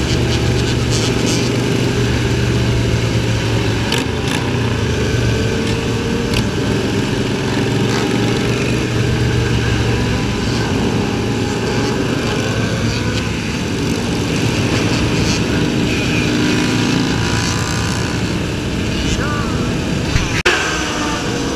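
Many motorcycle engines rumble and roar close by.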